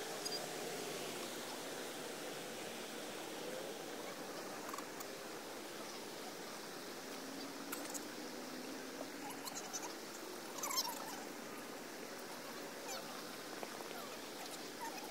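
A man calls out to a dog in the distance.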